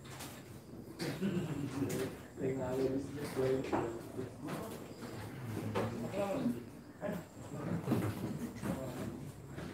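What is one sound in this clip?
Men talk calmly back and forth nearby.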